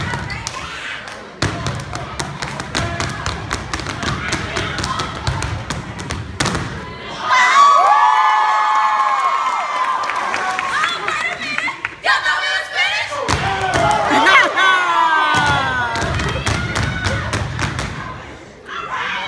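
Boots stomp hard and fast on a wooden stage in a rhythm.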